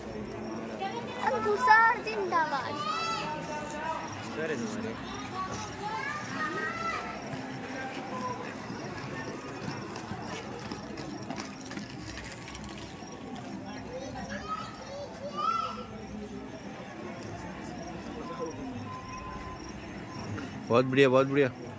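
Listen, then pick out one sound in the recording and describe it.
People chatter and call out.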